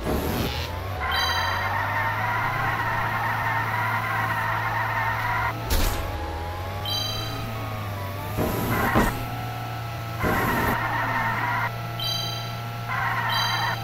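Game sound effects chime and sparkle.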